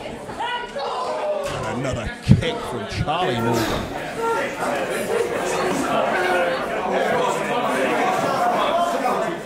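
A crowd of spectators cheers and chatters in an echoing room.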